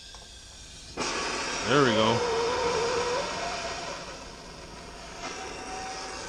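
Compressed air hisses loudly from a blow gun.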